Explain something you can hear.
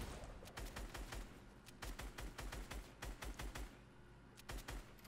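Rapid gunshots crack in a video game.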